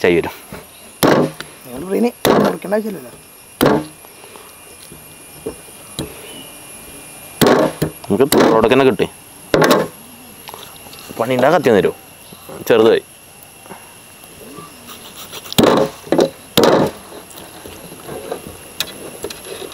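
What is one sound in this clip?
A cleaver chops sharply through meat and bone on a wooden block.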